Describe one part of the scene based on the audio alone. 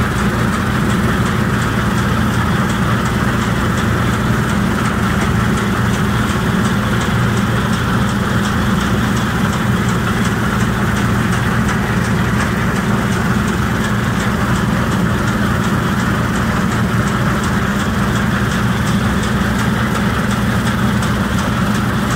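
A combine harvester engine drones loudly and steadily.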